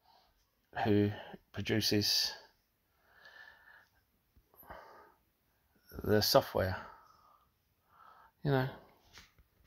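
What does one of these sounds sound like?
A man talks calmly and close up, in short bursts.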